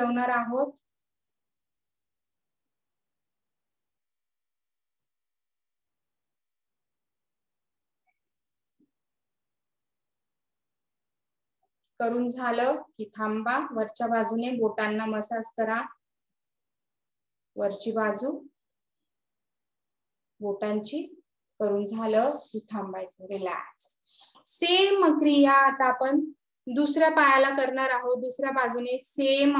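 A woman speaks calmly, close to the microphone, with long pauses.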